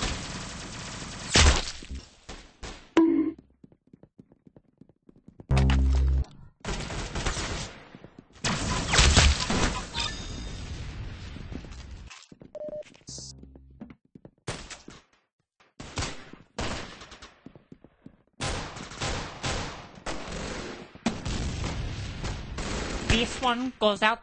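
Laser guns fire in sharp bursts.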